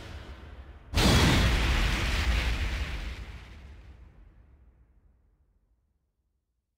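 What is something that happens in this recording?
A loud whooshing boom hits and fades slowly.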